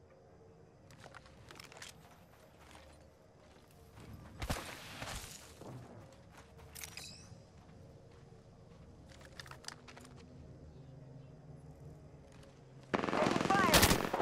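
Footsteps crunch quickly through dry grass and sand.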